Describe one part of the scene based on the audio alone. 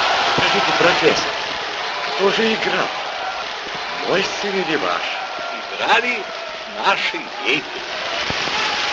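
Several people clap their hands close by.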